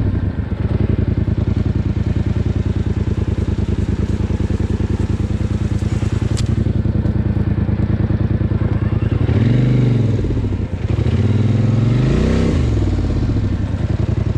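A quad bike engine chugs steadily at close range.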